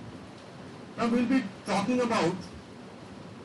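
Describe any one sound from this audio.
A man speaks briefly at a distance in a large room.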